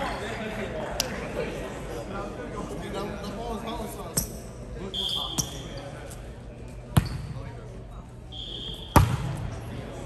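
A volleyball thumps loudly off hands.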